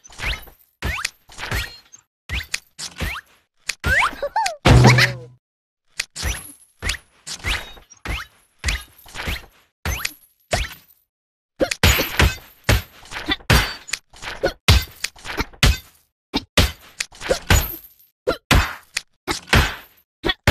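Short cartoonish sound effects pop and chirp in quick bursts.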